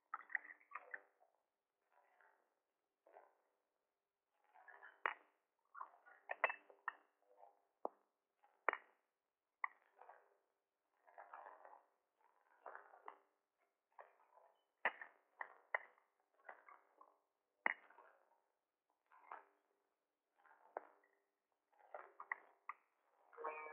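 Porcelain cups and saucers clink sharply as they are set down and moved.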